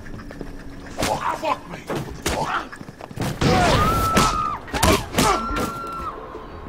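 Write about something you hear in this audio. Heavy punches and blows land in a brief scuffle.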